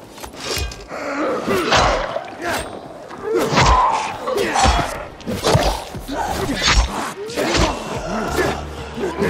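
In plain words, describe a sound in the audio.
Zombies growl and snarl close by.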